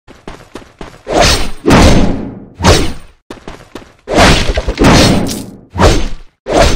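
Swords slash and strike in quick, loud bursts.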